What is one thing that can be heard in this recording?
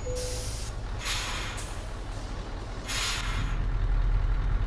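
Truck air brakes hiss sharply twice.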